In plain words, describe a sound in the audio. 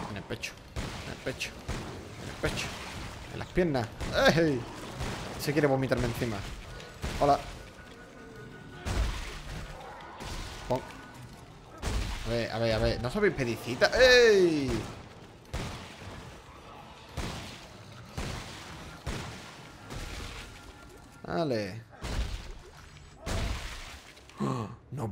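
A weapon fires in sharp bursts.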